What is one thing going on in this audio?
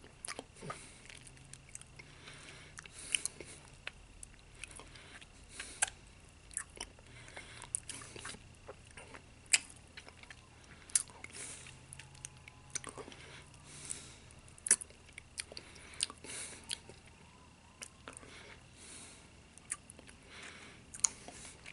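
A man smacks his lips and sucks his teeth close by.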